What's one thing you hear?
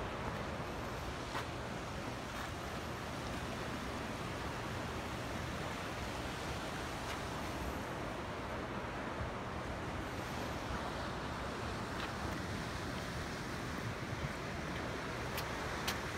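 Waves wash gently against rocks below.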